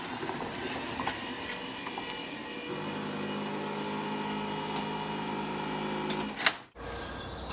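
A car engine idles and hums steadily.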